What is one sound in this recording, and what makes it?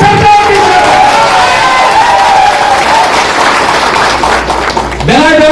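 A crowd claps along.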